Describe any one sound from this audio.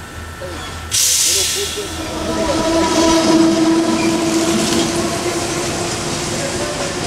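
A train rushes past close by.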